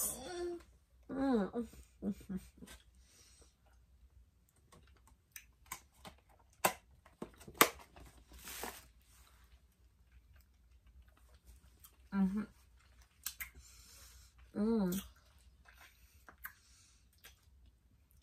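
A woman chews food with her mouth near a microphone.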